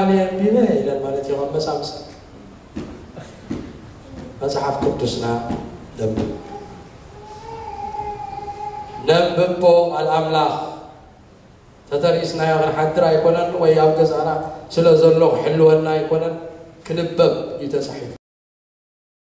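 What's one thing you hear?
A man speaks into a microphone, heard through loudspeakers in an echoing hall.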